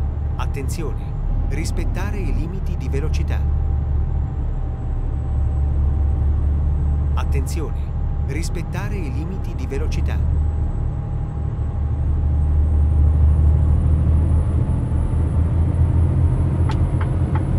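A truck engine rumbles steadily at a low pitch.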